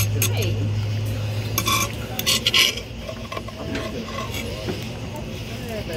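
A metal spatula scrapes and taps on a griddle.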